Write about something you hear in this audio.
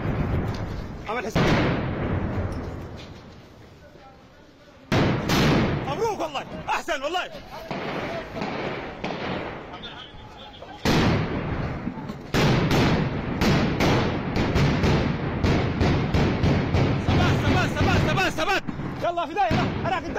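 Gunfire cracks in rapid bursts nearby, echoing off buildings.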